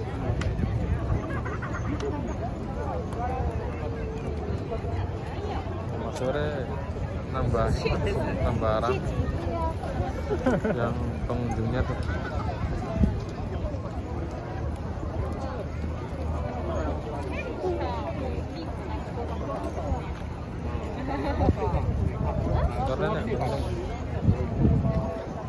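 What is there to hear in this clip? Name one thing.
A large crowd of men and women chatters nearby outdoors.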